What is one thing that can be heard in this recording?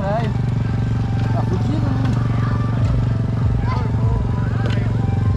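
A dirt bike engine runs close by with a steady, rattling idle.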